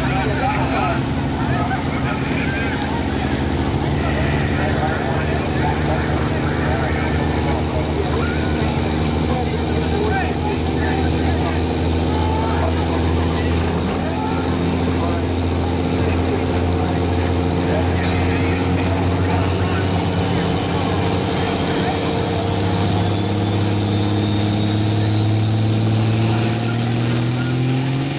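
A diesel engine roars loudly under heavy strain and its pitch slowly rises toward the end.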